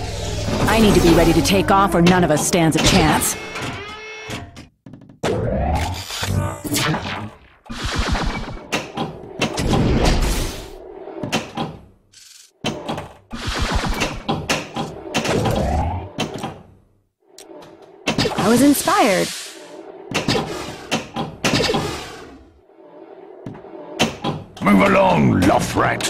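Electronic pinball sound effects and jingles play in bursts.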